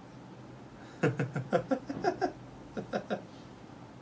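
A young man laughs heartily close to a microphone.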